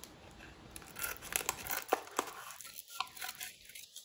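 Scissors snip through a foil wrapper.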